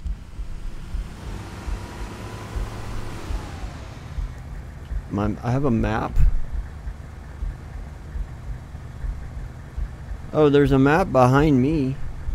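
A vehicle engine rumbles low and steadily.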